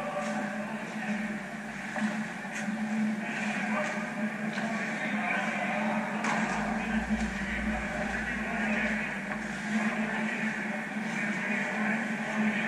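Young men shout and cheer far off in a large echoing rink.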